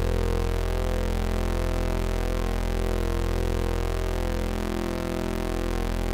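A synthesizer plays a sustained, buzzing low chord that slowly shifts in tone.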